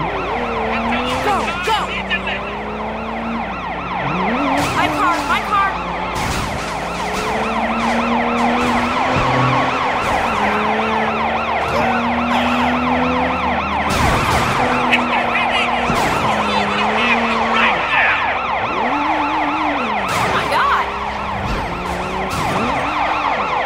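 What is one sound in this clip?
A police siren wails close by.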